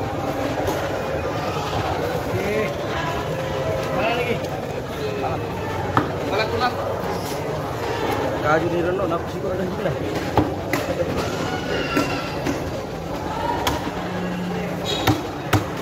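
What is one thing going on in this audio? Many people chatter in a busy, echoing hall.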